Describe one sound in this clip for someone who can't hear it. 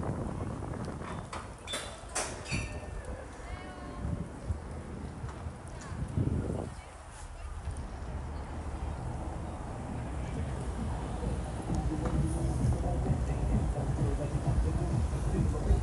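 Wind blows outdoors with a low rumble.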